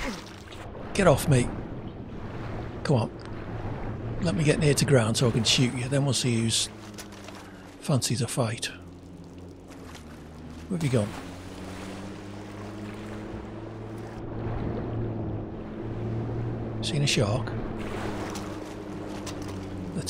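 Water splashes around a swimmer.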